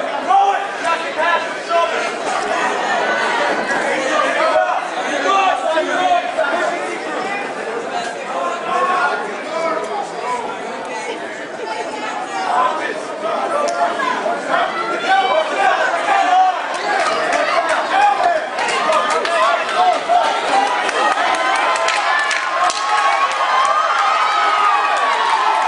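A crowd shouts and cheers loudly all around.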